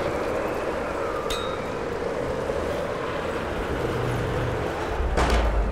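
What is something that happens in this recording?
A wooden crank creaks and grinds as it turns.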